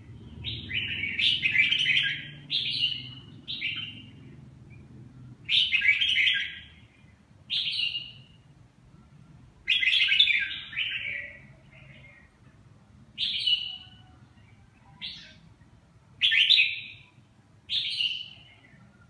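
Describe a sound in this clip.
A caged songbird sings loud, bright phrases in short bursts, close by.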